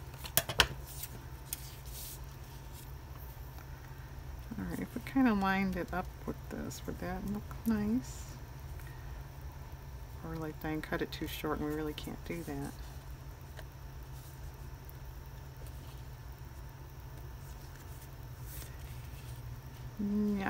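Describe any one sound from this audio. Paper rustles and slides on a table.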